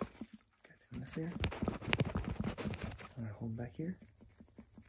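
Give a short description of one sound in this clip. A man speaks softly close to the microphone.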